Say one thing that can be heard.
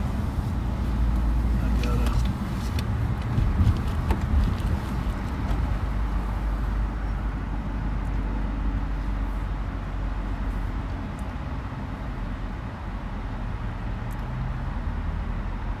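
A car engine hums steadily from inside the car as it drives and then slows to a stop.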